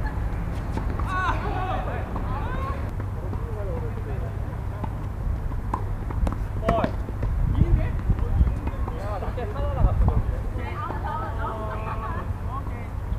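Adult men call out to each other across a tennis court.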